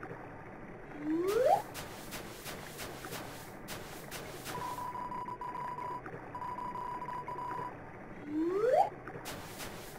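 A bike horn wheezes a short rising honk.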